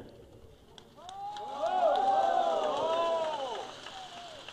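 A large crowd cheers and shouts in response.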